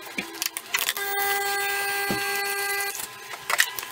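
A coffee machine hums steadily.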